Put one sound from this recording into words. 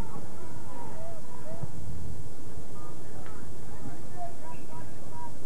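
Distant players call out to one another across an open field.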